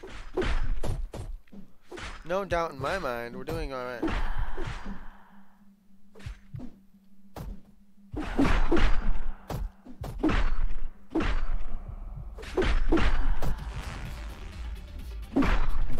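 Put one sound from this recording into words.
Blades clash and strike in quick bursts of fighting.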